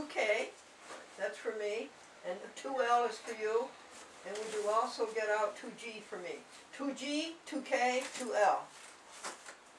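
An elderly woman talks nearby in a lively voice.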